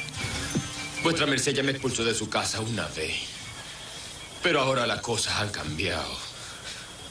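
A man speaks intently and close by.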